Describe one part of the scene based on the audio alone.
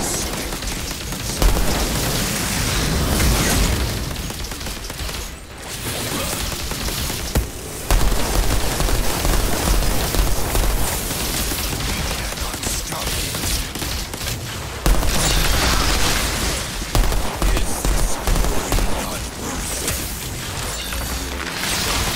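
Rifle fire crackles in rapid bursts.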